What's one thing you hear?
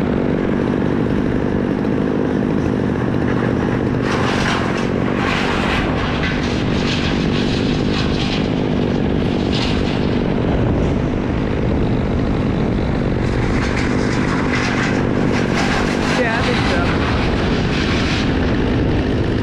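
A chainsaw engine drones loudly close by.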